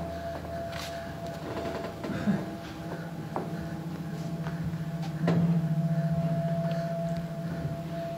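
Footsteps tread on a wooden stage floor.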